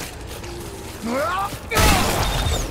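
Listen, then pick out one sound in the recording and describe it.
A monster lets out a shrill, rising screech.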